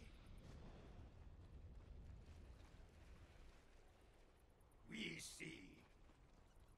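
A man talks quietly close to a microphone.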